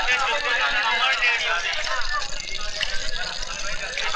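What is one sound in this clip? Water splashes from a tap.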